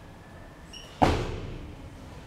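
A loaded barbell crashes down onto the floor with a heavy thud.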